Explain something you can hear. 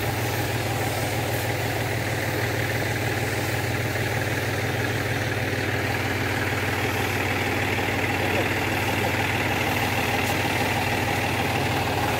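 A sprayer hisses as a fine mist of liquid sprays out.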